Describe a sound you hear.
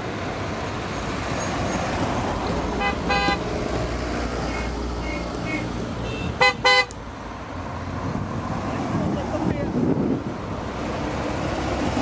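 Car engines hum and rumble as cars drive slowly past.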